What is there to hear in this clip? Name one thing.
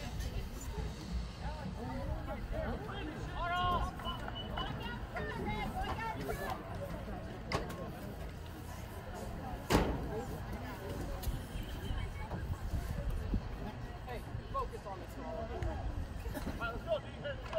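A crowd of spectators and players chatter and shout outdoors.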